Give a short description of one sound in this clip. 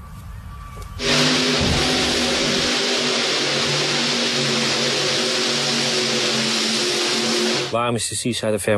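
A tractor engine roars loudly at full power.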